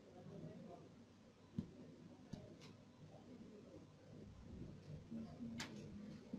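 Small metal jewellery clicks softly as it is handled.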